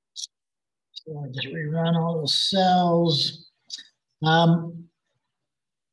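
A man speaks calmly and close to a microphone, as if over an online call.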